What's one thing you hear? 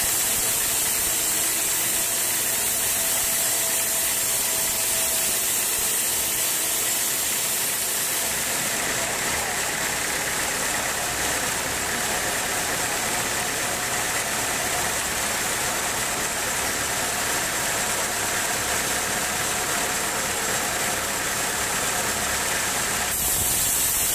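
A band saw whines loudly as it cuts through a wooden log.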